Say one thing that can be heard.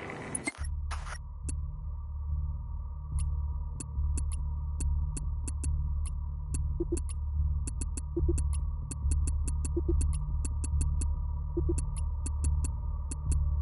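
Soft electronic clicks tick repeatedly.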